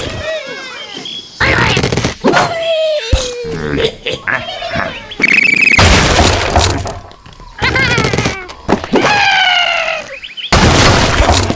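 Cartoon birds squawk as they fly through the air.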